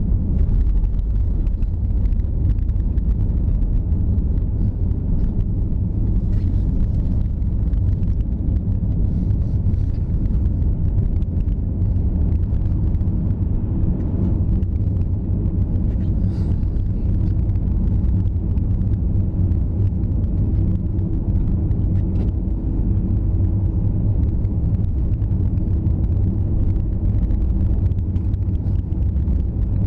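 Tyres rumble over a snowy road.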